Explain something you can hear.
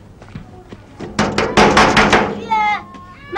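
A fist bangs on a metal gate.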